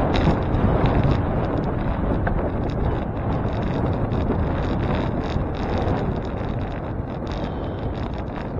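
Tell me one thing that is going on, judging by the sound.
Tyres roll steadily over a paved road.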